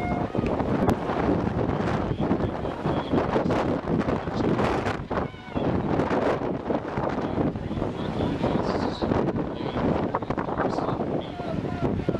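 Swimmers splash and churn the water.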